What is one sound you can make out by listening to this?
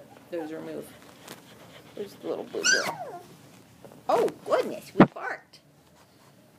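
Newborn puppies squeal and whimper up close.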